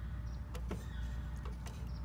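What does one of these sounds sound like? A timer dial clicks as a hand turns it.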